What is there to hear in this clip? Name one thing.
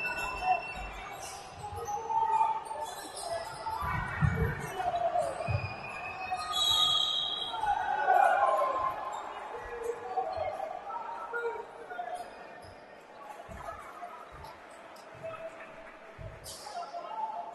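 A basketball bounces on a wooden court, echoing in a large hall.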